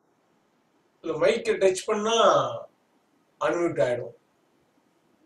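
An elderly man speaks calmly close to a microphone.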